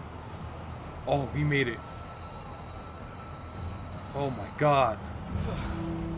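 A man speaks in a strained voice.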